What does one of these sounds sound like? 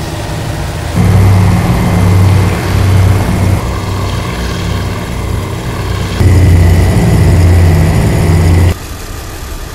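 Propeller engines roar louder and closer, with a deep throbbing.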